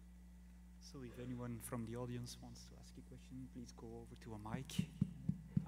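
A man on a panel speaks through a microphone.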